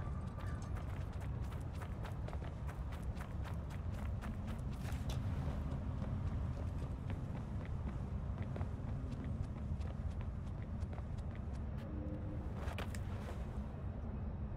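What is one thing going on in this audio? Quick footsteps run and scuff over hard ground.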